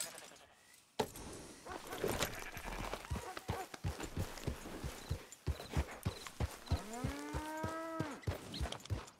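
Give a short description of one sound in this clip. Horse hooves clop steadily on dry ground.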